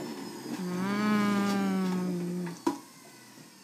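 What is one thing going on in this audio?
A juicer motor whirs and winds down.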